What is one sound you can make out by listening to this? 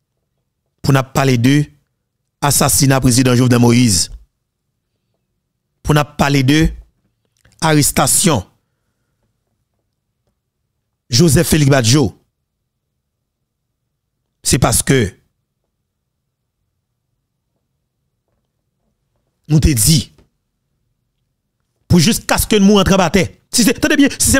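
A man speaks into a close microphone in short bursts with pauses.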